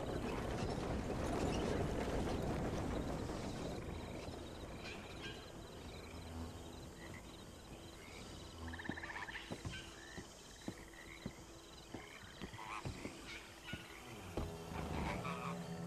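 Horse hooves clop on wooden planks.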